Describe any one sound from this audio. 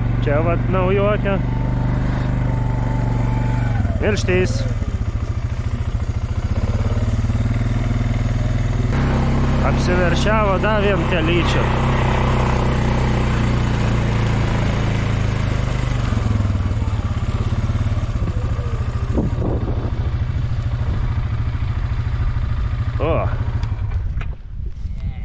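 An engine idles with a steady low rumble.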